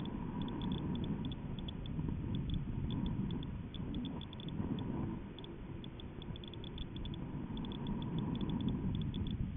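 Wind buffets the microphone with a steady low rumble.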